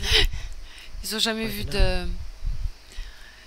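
A young man answers quietly.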